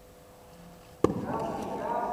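A bat cracks against a ball in a large echoing hall.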